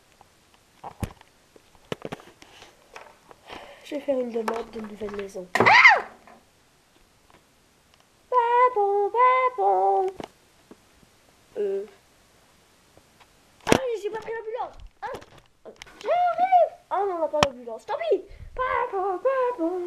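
A small plastic toy knocks and taps on a wooden tabletop.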